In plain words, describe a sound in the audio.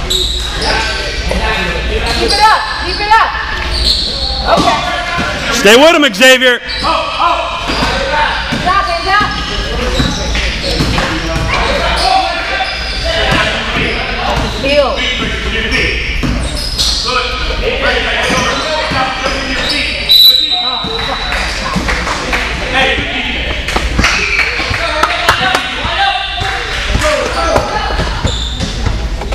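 Children and adults shout and cheer throughout in a large echoing gym.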